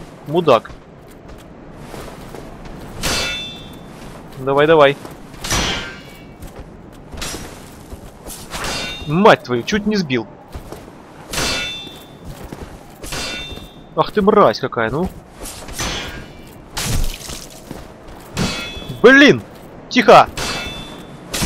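Blades clang sharply against metal armour and a shield, again and again.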